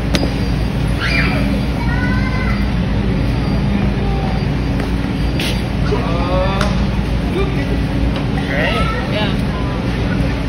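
A teenage boy talks loudly nearby.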